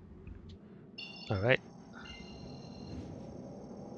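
An electronic targeting tone beeps and rings steadily.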